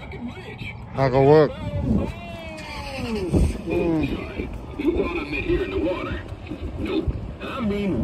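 A man's recorded voice speaks with animation through a small loudspeaker.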